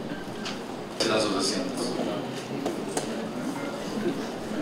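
A man speaks over a loudspeaker in a large echoing hall.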